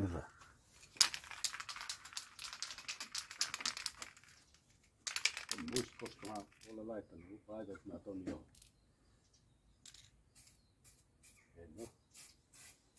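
A spray can hisses in short and long bursts.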